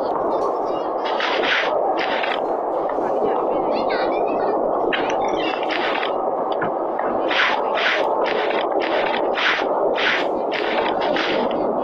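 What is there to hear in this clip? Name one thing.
Footsteps scuff steadily across a hard floor.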